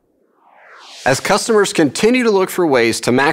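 A man speaks clearly and evenly into a close microphone.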